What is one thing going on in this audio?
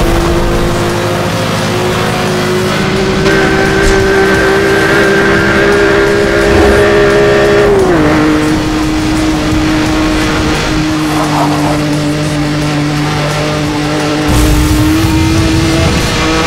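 A racing car engine roars at high revs, shifting gears now and then.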